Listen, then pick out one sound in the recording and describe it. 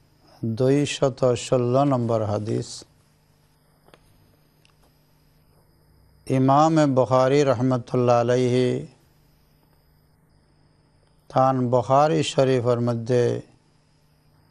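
A middle-aged man speaks calmly and steadily into a close microphone, pausing between phrases.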